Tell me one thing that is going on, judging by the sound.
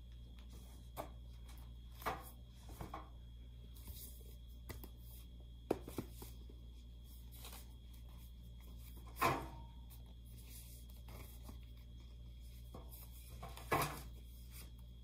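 Books knock and thud onto a metal shelf.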